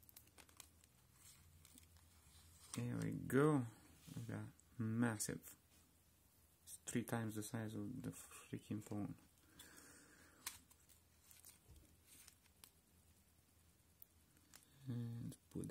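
A thin metal tool clicks and scrapes against a plastic phone casing.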